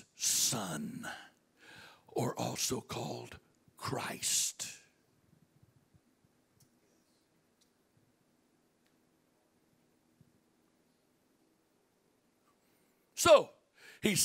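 An older man speaks with animation into a microphone through loudspeakers in an echoing room.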